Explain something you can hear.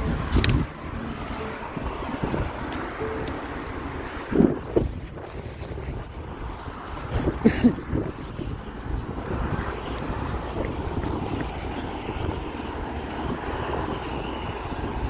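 Ice pellets patter and hiss steadily on the pavement outdoors.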